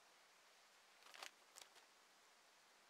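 A paper map rustles as it unfolds.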